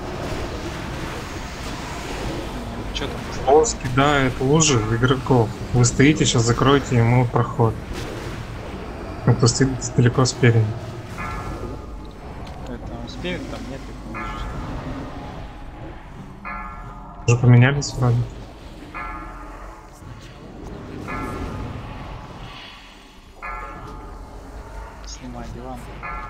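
Spells and weapons clash in a busy game battle.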